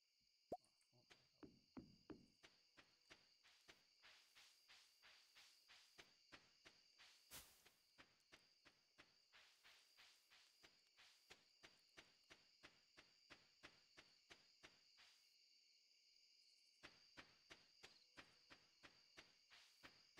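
Footsteps tap quickly and steadily on a dirt path.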